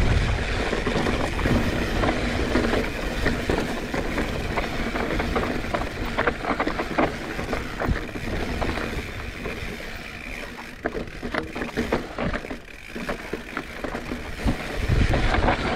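A bicycle chain and frame clatter over bumps.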